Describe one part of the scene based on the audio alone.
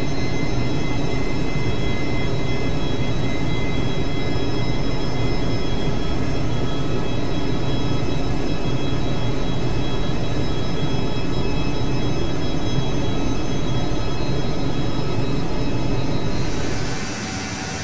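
Aircraft engines drone steadily, deep and muffled, as if from inside the cockpit.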